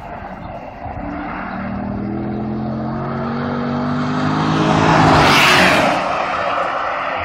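A sports car engine roars, rising in pitch as it speeds closer and rushes past.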